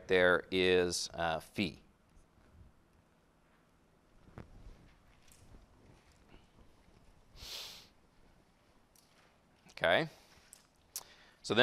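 A man lectures calmly through a microphone, in short bursts with pauses.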